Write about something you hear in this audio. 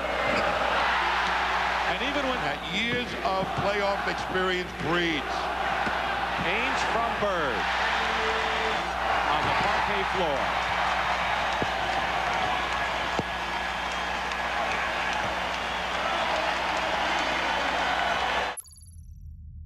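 A large crowd cheers and roars loudly in an echoing arena.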